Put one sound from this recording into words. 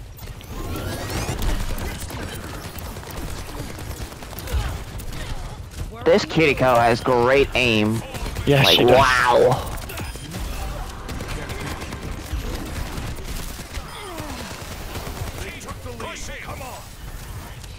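A gun fires bursts of shots.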